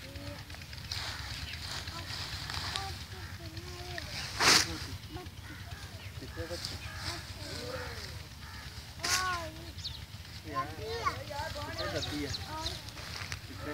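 Leafy plants rustle as they are pulled up by hand.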